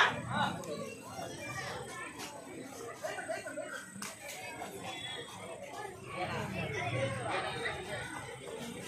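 A large outdoor crowd of men chatters and shouts.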